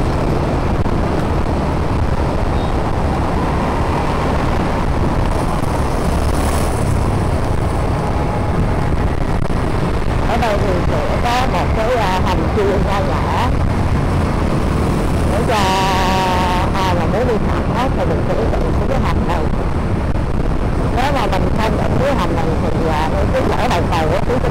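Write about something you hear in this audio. Motorbikes and cars pass by on a busy road.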